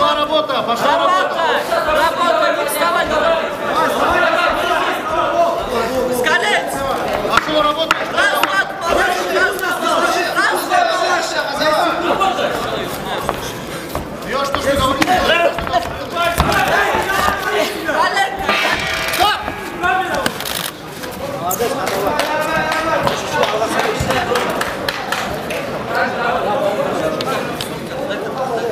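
A crowd of spectators shouts and cheers throughout in a large echoing hall.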